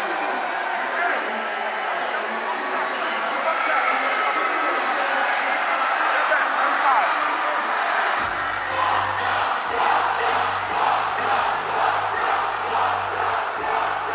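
A large crowd cheers and screams in a big open space.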